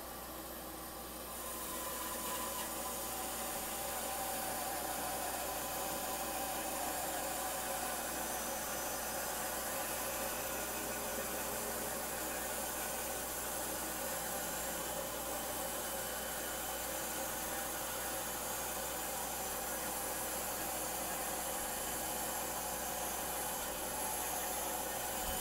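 A band saw whirs steadily as it cuts through wood.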